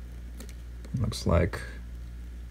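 A metal tool taps and scrapes against hard plastic.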